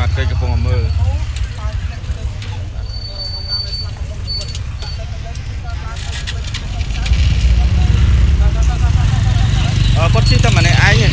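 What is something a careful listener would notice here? A crowd of men and women talk and call out excitedly nearby.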